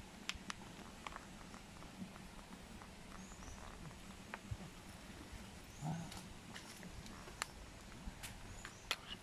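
A buffalo's hooves shuffle on concrete.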